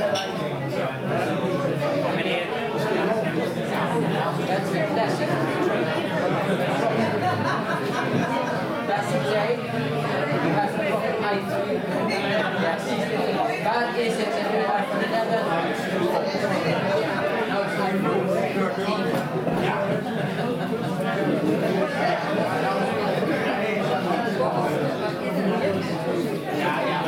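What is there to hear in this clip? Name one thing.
Several men and women chatter and murmur nearby.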